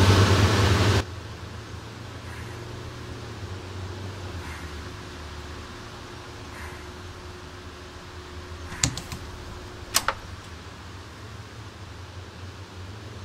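A bus engine idles quietly.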